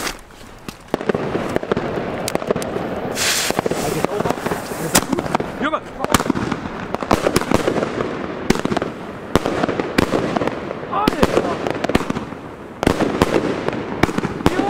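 Fireworks crackle and bang loudly nearby in rapid bursts.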